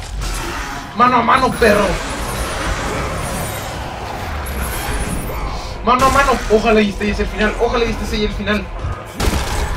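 A young man talks loudly and with animation close to a microphone.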